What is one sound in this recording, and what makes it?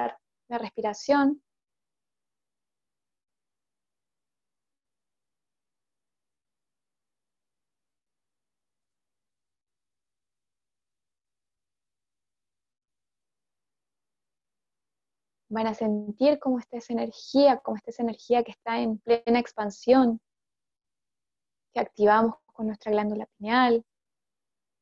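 A woman talks calmly and close, through a headset microphone, with long silent pauses.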